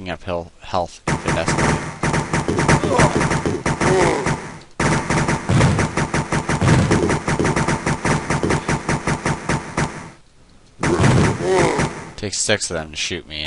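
A pistol fires rapid shots, over and over.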